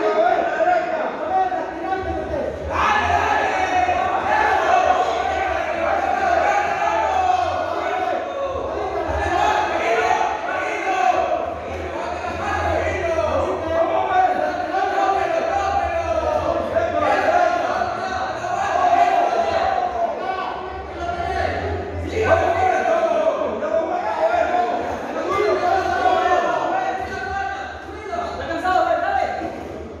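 A crowd of men and women chatter and call out in a large echoing hall.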